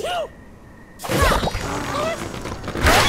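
A slingshot stretches and snaps as it launches a bird.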